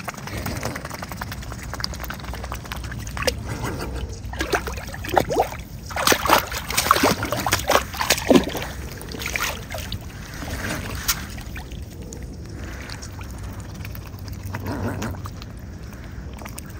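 A swan dabbles its bill in shallow water, splashing and dripping close by.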